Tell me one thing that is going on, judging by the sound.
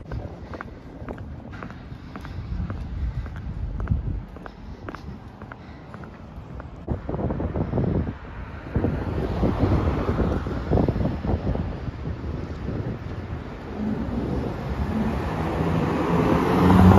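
Traffic rumbles along a city street outdoors.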